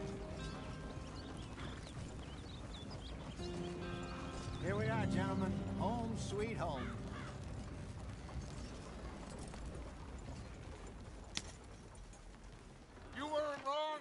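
A horse-drawn wagon rumbles and creaks along a dirt track.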